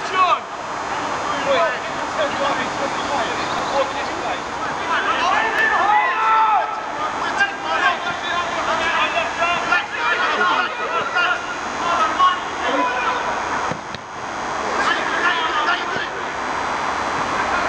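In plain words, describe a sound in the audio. Men shout and call to each other across an open outdoor pitch.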